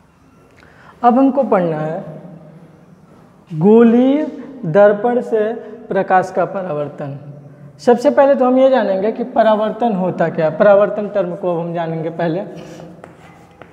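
A man speaks clearly and calmly, close by, as if explaining to a class.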